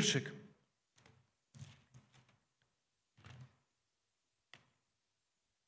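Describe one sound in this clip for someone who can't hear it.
Paper rustles in a man's hands.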